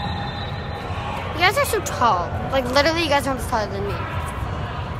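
A young girl speaks excitedly, close by.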